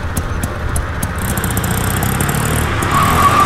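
A car drives by on a street.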